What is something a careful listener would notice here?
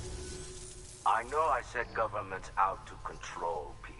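An elderly man speaks calmly and earnestly.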